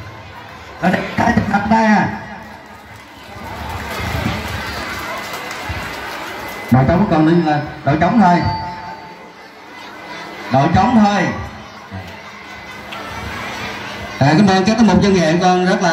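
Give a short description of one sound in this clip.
A large crowd of children chatters outdoors.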